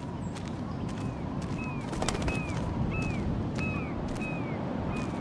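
A small bird chirps repeatedly in short high calls.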